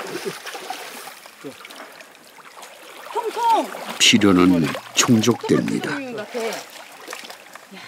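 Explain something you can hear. Water splashes softly as a net is pulled through a shallow stream.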